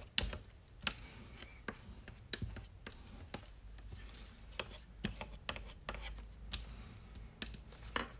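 A bone folder scrapes along a paper fold.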